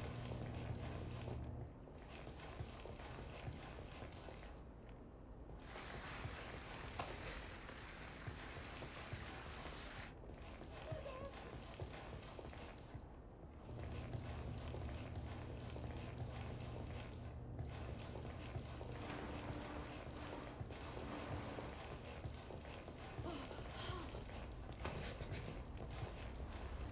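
Soft footsteps shuffle across a hard floor.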